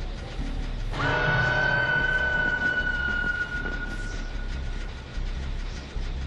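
A sharp ringing tone sounds suddenly and slowly fades.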